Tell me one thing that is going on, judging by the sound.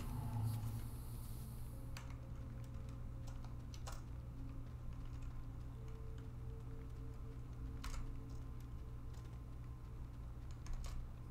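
A small robot clanks as it walks along.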